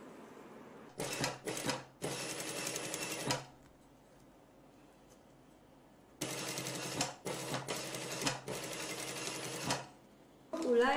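A sewing machine runs fast in short bursts.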